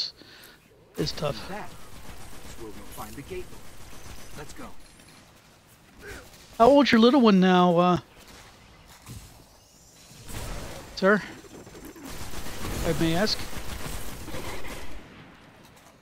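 Rapid gunfire rattles in bursts.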